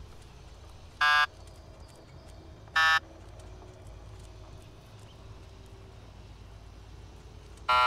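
An electronic keypad buzzer sounds in short, loud bursts.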